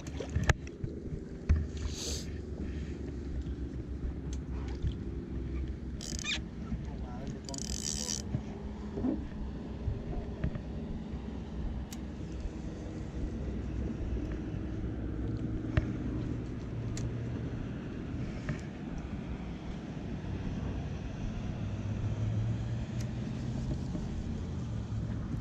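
A fishing reel clicks softly as its line is wound in.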